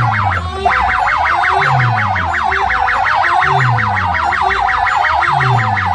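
Loud music with fast wailing electronic sweeps and deep bass blares from a large loudspeaker stack outdoors.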